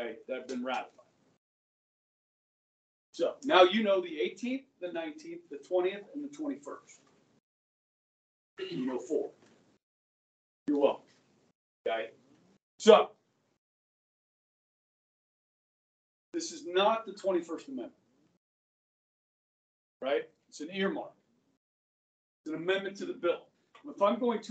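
A middle-aged man speaks with animation, pausing often.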